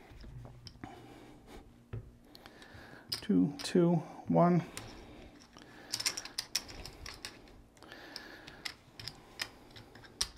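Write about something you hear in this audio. Casino chips click and clack on a felt table.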